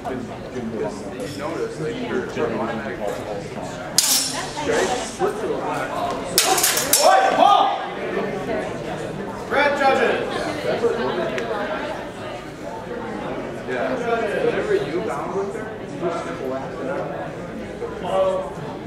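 Men and women talk and call out around an echoing room.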